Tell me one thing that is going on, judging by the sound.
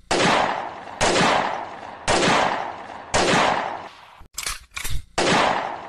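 Loud gunshots ring out one after another, each echoing and slowly fading outdoors.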